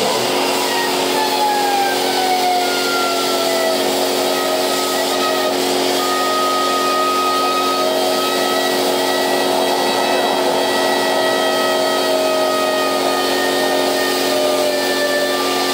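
A small motor whirs at high speed with a steady whine that dips in pitch at first and then holds.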